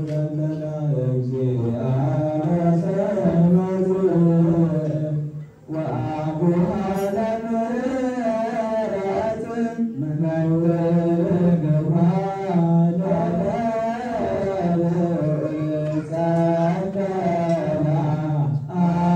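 A group of men chant together in a slow, droning unison that echoes in a large hall.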